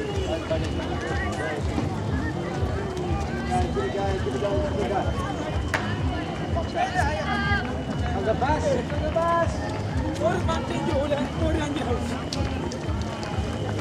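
Runners' footsteps patter on asphalt.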